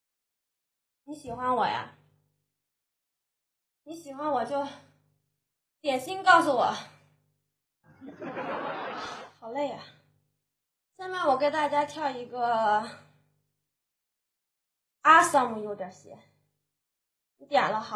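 A young woman speaks in short bursts into a microphone, close and lively.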